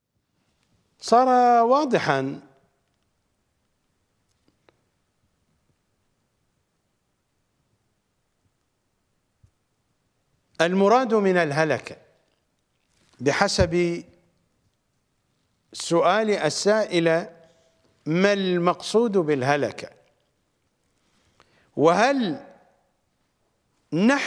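A middle-aged man speaks calmly and slowly into a microphone, with long pauses.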